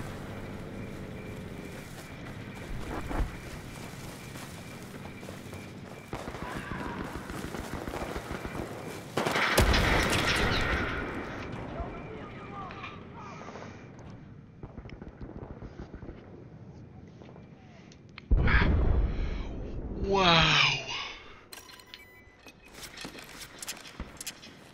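A young man speaks into a headset microphone.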